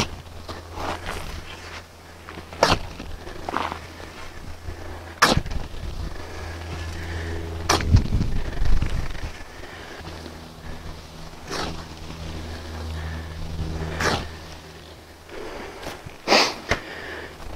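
A shovel scrapes and digs into soil.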